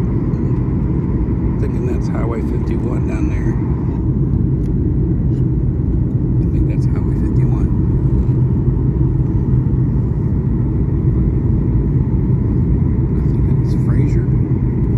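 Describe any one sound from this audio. A jet engine roars steadily with a deep rumble inside an aircraft cabin.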